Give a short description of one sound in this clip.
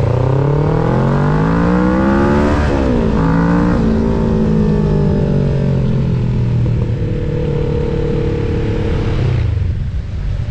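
A motorcycle engine revs up and climbs through the gears.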